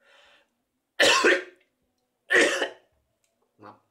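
A young man coughs loudly close by.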